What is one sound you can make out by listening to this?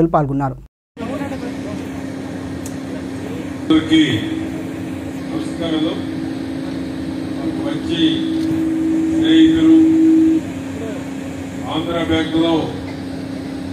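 A man speaks through a microphone and loudspeaker, in short bursts with pauses.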